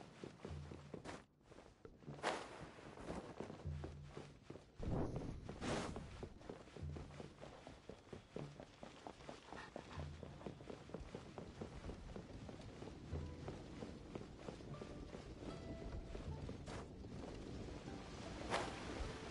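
Light footsteps patter quickly on hard floors.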